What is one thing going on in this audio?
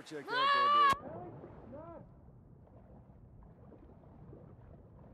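Water gurgles and bubbles, muffled as if heard from underwater.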